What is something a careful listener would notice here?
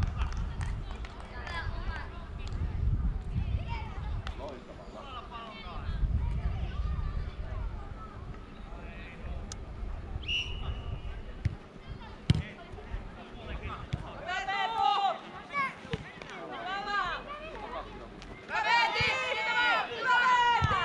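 Young girls shout and call out across an open field.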